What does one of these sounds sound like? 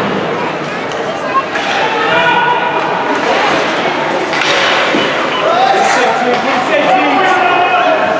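Spectators talk and call out nearby.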